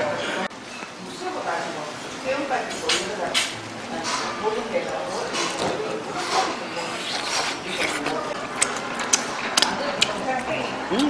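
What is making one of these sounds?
A man bites and chews crunchy food close to a microphone.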